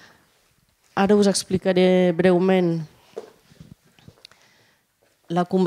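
A woman speaks clearly to an audience in a large room.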